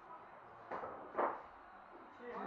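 Billiard balls knock together with a click.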